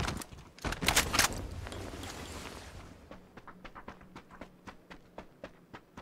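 Footsteps crunch quickly on dry ground.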